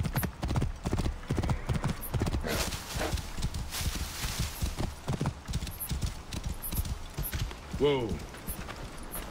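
A horse's hooves thud steadily on sandy ground.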